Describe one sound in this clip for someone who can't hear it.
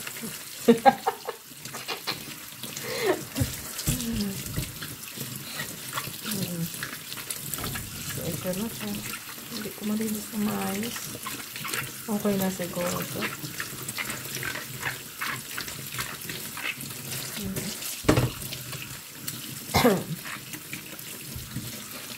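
Hands rub and squeak against wet fruit.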